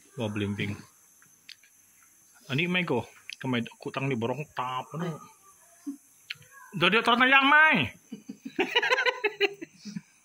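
An elderly man talks casually close by.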